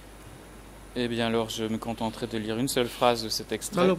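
A man speaks calmly and formally into a microphone.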